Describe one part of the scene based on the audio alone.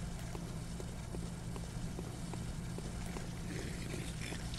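Footsteps tap on stone at a steady pace.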